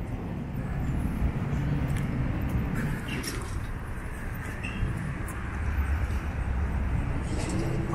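Traffic rumbles past on a nearby street.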